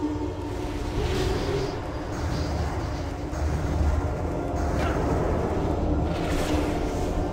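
A magic spell crackles and whooshes with a bright shimmering burst.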